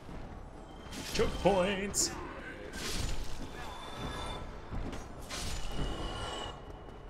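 Swords clash and slash in quick bursts.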